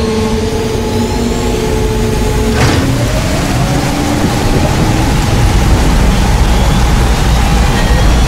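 A spacecraft's engines rumble deeply and grow louder as it lifts off.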